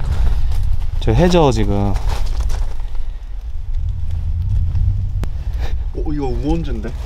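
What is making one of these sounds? A young man speaks up close in short, animated bursts.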